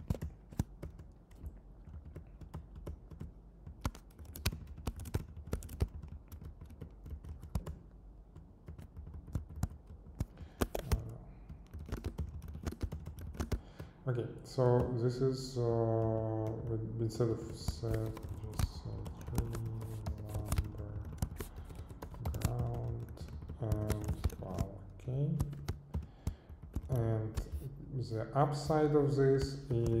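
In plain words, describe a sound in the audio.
Keys clack on a computer keyboard in quick bursts.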